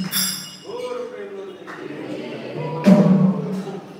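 A hand drum is beaten in a steady rhythm.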